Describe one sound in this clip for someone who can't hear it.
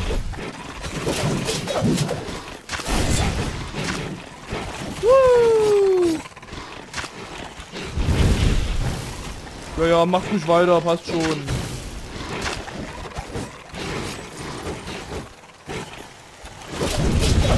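Fiery blasts roar and crackle.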